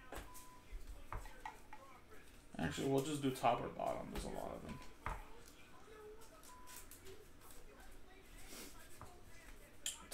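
Trading cards slide and click against each other in a hand.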